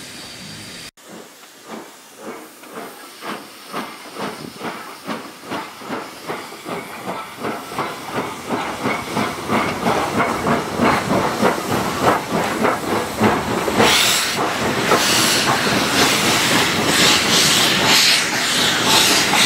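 A steam locomotive chuffs in a steady rhythm that quickens and grows louder.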